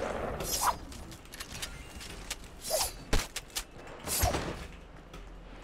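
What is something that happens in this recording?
Short bright game chimes ring out every second or so.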